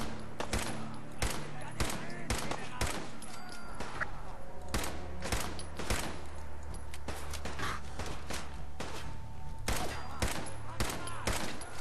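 A man grunts and shouts in pain.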